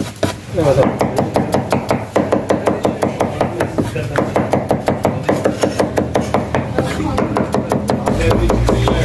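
A knife chops rapidly on a wooden board.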